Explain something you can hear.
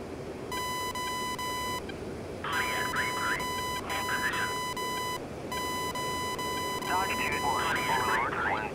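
A cockpit warning tone sounds in long, repeated bursts.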